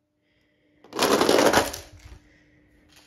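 A toy truck rolls down a plastic ramp.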